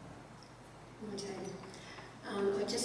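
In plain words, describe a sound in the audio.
A woman speaks into a microphone in an echoing room.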